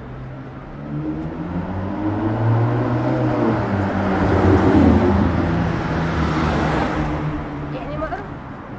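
A car drives past on a city street, rising and then fading.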